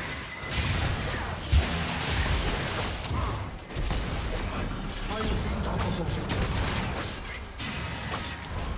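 Game spells crackle, whoosh and boom in a hectic fight.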